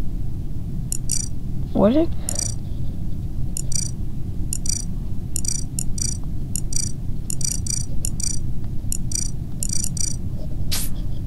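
Short electronic beeps sound in quick succession as menu items are tapped.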